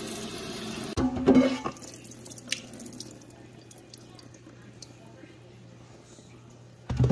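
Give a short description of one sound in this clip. Water trickles and drips into a metal sink.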